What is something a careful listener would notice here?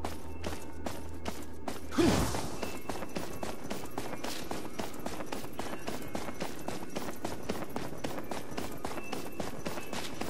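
Quick footsteps run on cobblestones.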